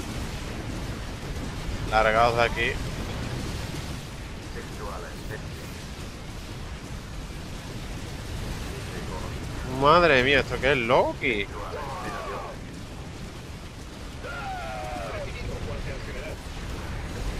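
Gunfire and explosions rattle in a battle.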